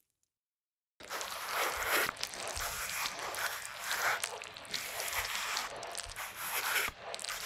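A wire brush scrubs hard against rusty metal.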